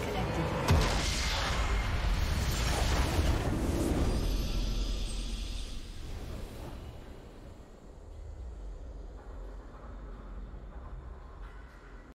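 A triumphant fanfare swells and fades.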